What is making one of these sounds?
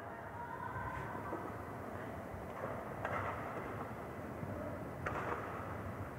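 A badminton racket sharply strikes a shuttlecock.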